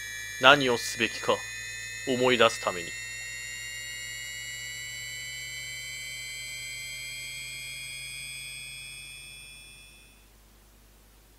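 A large airship's engines hum steadily and fade away as it flies off.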